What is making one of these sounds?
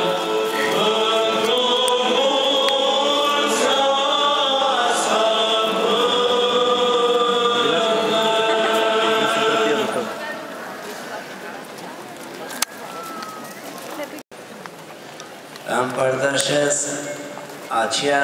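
A choir of men chants a slow hymn outdoors over loudspeakers.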